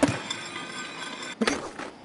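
A skateboard grinds along a metal rail with a scraping screech.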